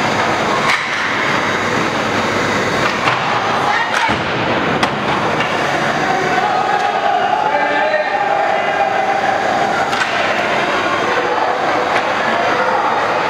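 Ice skates scrape and carve across ice in a large echoing rink.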